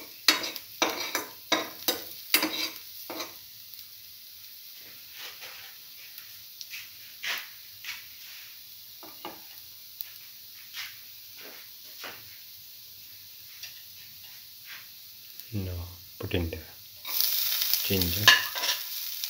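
Food sizzles and crackles in a hot pan, growing louder near the end.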